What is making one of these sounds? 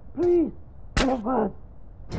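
A single gunshot cracks sharply.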